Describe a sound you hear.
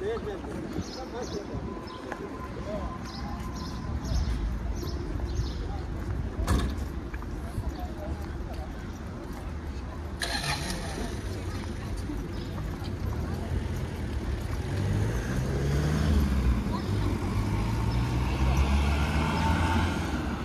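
Footsteps scuff on pavement close by.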